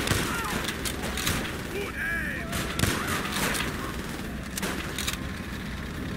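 Gunshots crack and echo.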